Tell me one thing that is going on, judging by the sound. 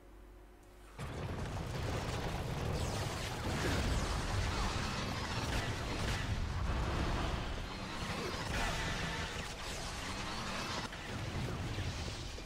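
Heavy guns fire in rapid, loud bursts.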